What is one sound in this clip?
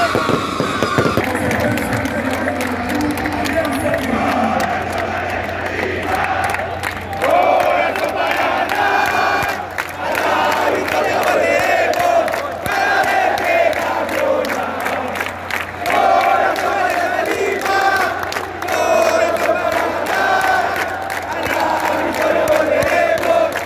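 A huge stadium crowd chants and sings loudly in unison.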